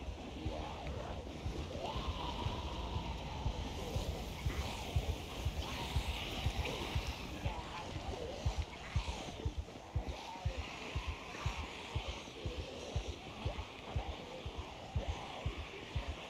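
A large crowd of zombies groans and moans.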